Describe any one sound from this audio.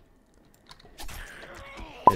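A zombie snarls close by.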